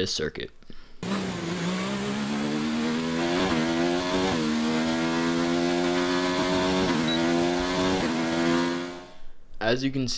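A racing car engine roars at high revs, climbing in pitch through the gears.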